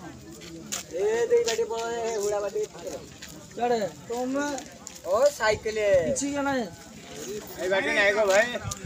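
A man speaks loudly and with emotion close by.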